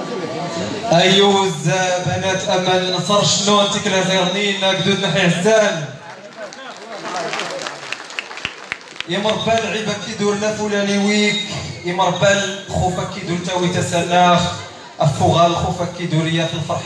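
A young man sings into a microphone through loudspeakers.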